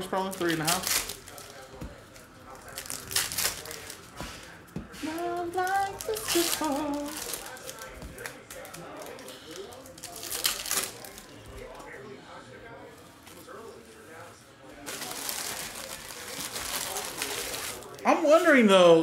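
Plastic wrappers crinkle as hands tear open card packs.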